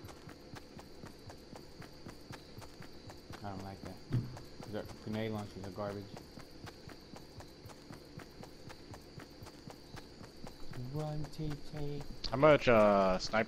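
Footsteps run quickly and steadily over grass.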